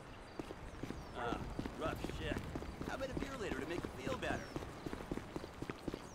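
Footsteps run over pavement outdoors.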